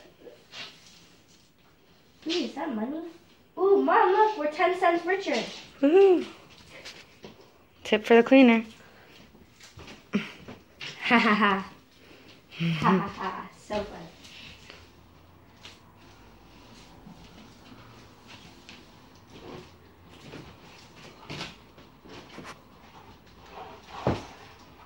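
A broom sweeps across a floor.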